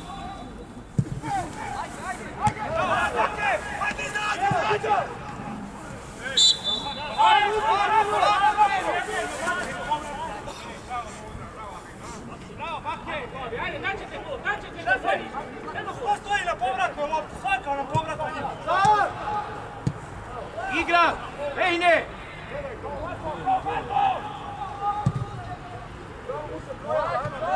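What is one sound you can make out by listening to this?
Young men shout to each other in the distance outdoors.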